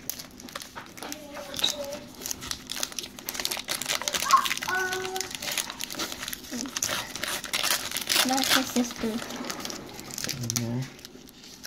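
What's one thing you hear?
A foil wrapper crinkles in hands.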